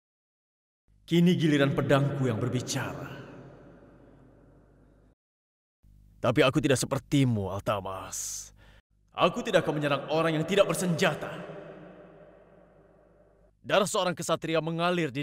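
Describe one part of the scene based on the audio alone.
A young man speaks forcefully and angrily, with a ringing echo.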